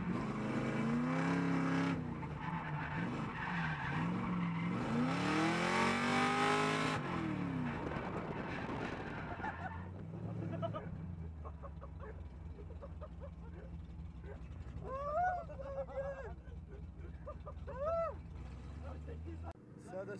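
A car engine roars loudly close by, revving up and down.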